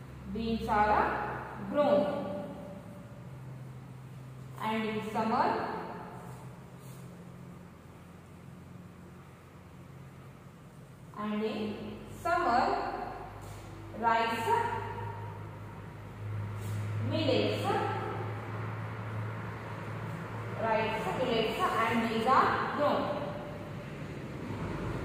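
A young woman speaks slowly and clearly nearby, as if dictating.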